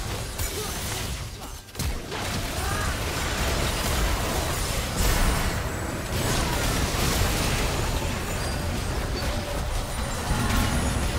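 Fantasy battle sound effects burst and clash in quick succession.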